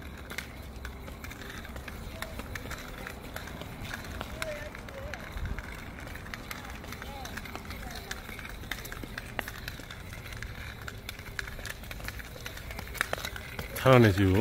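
A child's plastic ankle skipping toy clatters around on a hard court.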